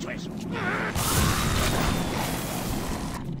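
Electricity crackles and zaps loudly.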